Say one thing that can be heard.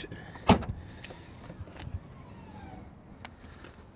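A car's tailgate clicks open.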